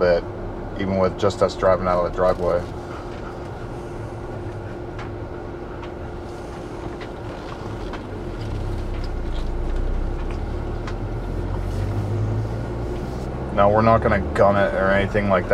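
A vehicle engine rumbles steadily from inside the cabin.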